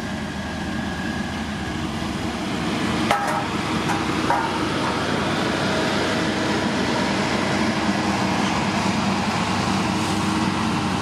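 A grader blade scrapes and pushes loose gravel.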